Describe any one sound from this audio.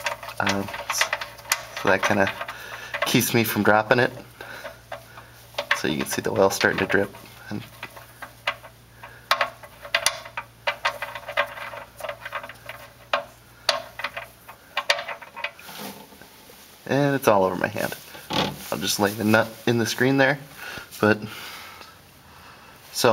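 Tools clink and tap against metal close by.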